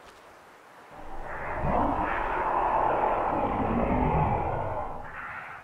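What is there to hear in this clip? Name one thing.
Flames burst up and roar loudly.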